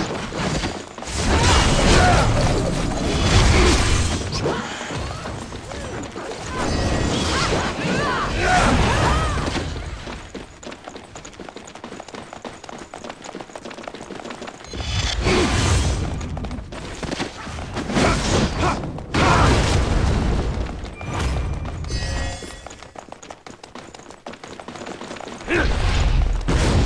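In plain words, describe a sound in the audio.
Fiery explosions boom.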